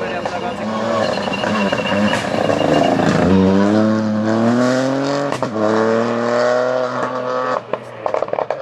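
A rally car engine roars loudly as the car speeds past up close.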